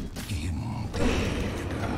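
Magic spells and blows clash loudly in a video game battle.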